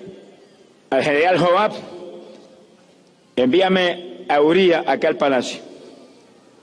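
An elderly man speaks forcefully into a microphone, his voice echoing over a loudspeaker in a large open space.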